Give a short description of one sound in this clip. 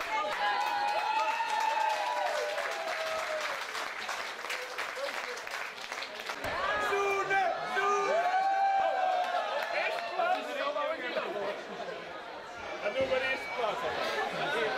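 A crowd of people chatters in a large tent.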